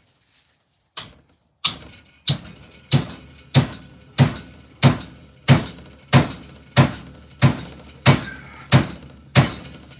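A hammer strikes metal in a steady, fast rhythm.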